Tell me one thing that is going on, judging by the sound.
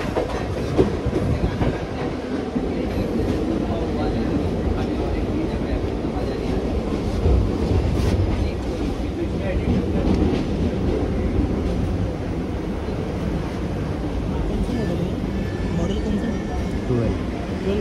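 Wind rushes in through an open train door.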